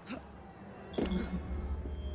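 A person lands from a jump with a heavy thud.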